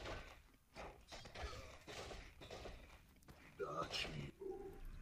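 Swords and axes clash and strike repeatedly in a battle.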